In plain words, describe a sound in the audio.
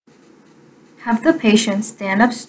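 A woman speaks close by, calmly explaining.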